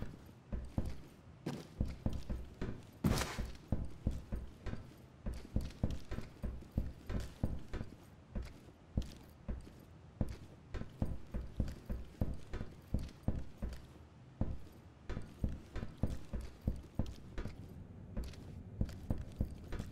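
Footsteps thud quickly and steadily on a hard floor.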